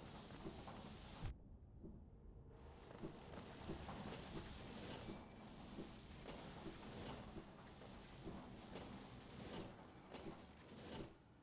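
Crystal beams crackle and hum with a bright ring.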